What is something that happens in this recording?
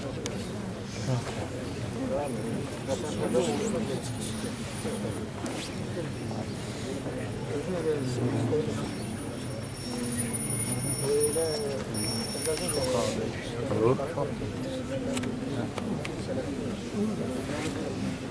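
A crowd murmurs and talks outdoors close by.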